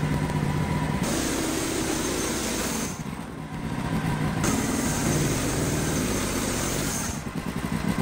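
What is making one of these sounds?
A small gasoline engine runs loudly and steadily close by.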